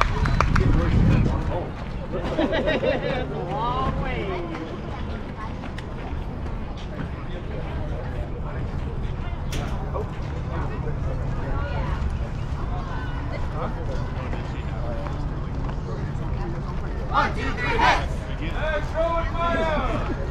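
Young players shout and cheer in the distance outdoors.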